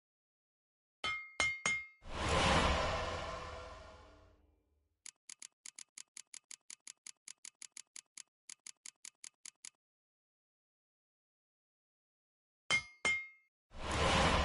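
A metallic crafting chime rings out and slowly fades.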